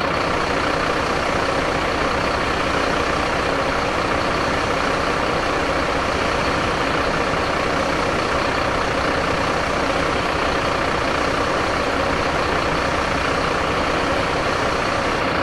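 A diesel fire engine's engine runs.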